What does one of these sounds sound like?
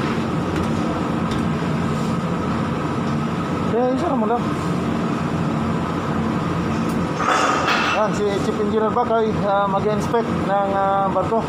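A ship's engine hums steadily.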